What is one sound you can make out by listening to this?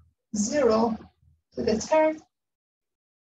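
A young woman speaks calmly into a nearby microphone.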